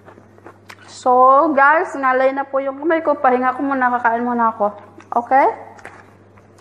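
A young woman speaks up close, in a lively voice.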